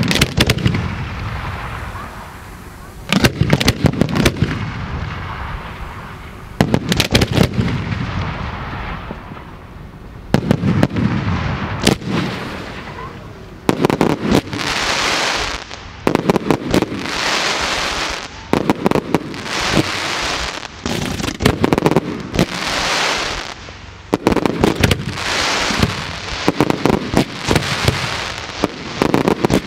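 Fireworks launch from mortar tubes with sharp booming thuds.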